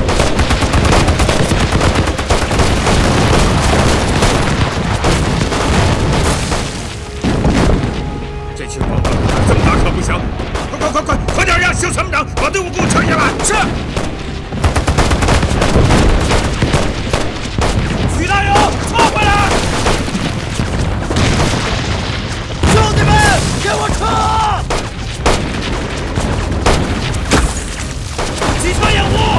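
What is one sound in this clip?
Rifles and machine guns fire in rapid bursts.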